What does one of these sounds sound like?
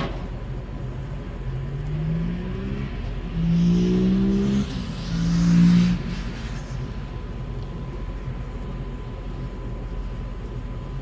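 Flames crackle and pop in a firebox.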